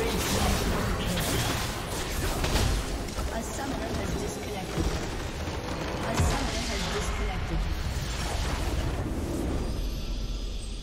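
Game spell effects crash and burst in a fast battle.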